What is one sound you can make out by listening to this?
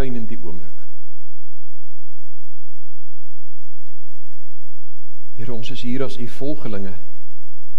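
A middle-aged man speaks calmly through a microphone, pausing between phrases.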